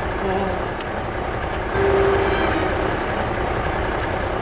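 A van engine hums as the van drives along.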